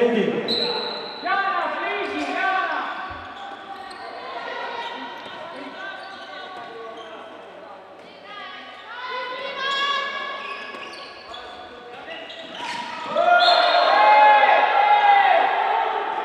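Sneakers squeak on a hard indoor court.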